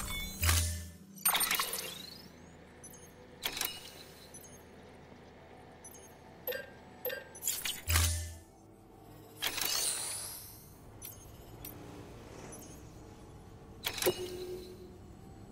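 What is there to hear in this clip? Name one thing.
Electronic interface sounds whoosh and beep in quick bursts.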